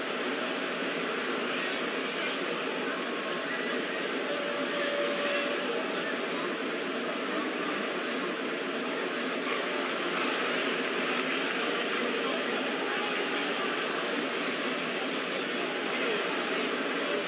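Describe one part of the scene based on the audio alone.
A large indoor crowd murmurs and cheers steadily.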